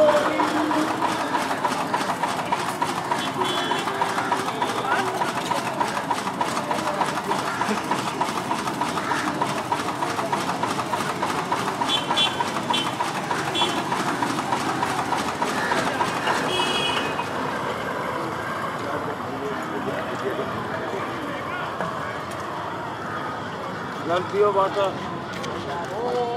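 A crowd of men and women chatters outdoors nearby.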